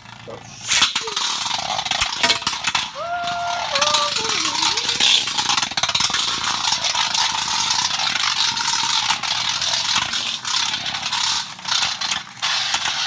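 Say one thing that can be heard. Spinning tops whir and hiss on a hard surface.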